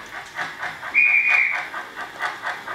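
A model steam train's whistle toots briefly.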